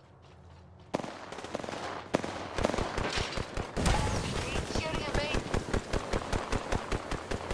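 A gun fires in rapid, rhythmic bursts.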